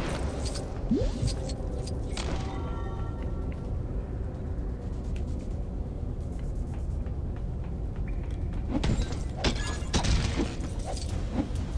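Coins jingle in bright, quick chimes as they are collected.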